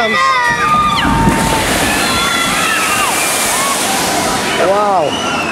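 A boat splashes down into water with a loud rushing crash.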